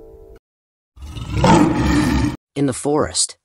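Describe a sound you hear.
A bear roars loudly.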